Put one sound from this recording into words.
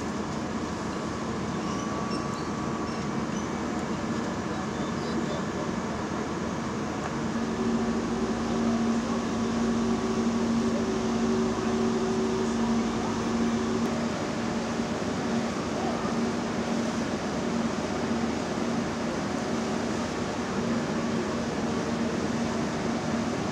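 A fire engine's pump drones steadily nearby.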